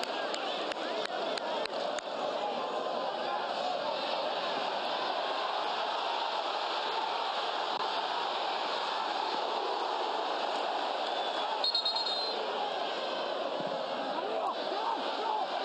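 A stadium crowd cheers and chants steadily outdoors.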